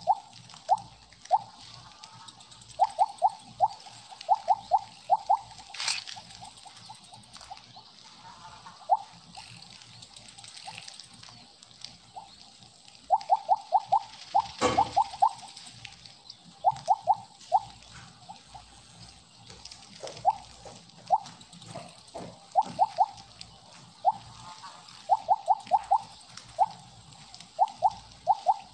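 Short high game blips chime quickly in bursts as a snake eats pellets.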